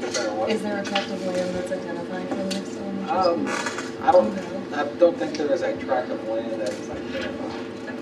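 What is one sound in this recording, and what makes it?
A man speaks from across the room.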